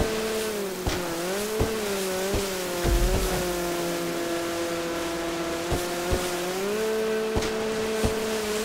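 A jet ski hull slaps against the water.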